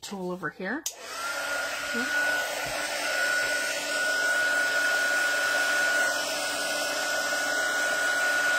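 A heat tool blows and whirs steadily up close.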